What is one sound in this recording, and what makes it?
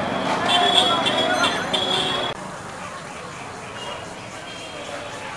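Traffic engines rumble steadily outdoors.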